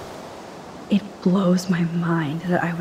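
A young woman speaks calmly and softly.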